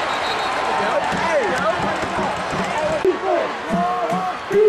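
Men in a crowd nearby shout and yell.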